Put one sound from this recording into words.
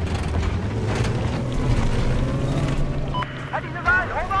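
A vehicle engine rumbles low and steady, then cuts off.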